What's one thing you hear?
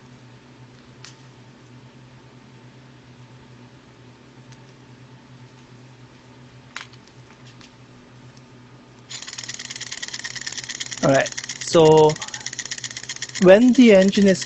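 A small engine whirs and hums steadily.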